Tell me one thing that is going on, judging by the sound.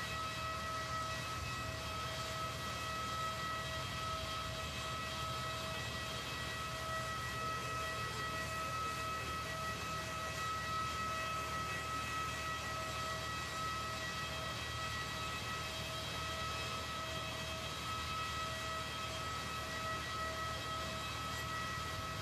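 An aircraft's engine whines steadily nearby.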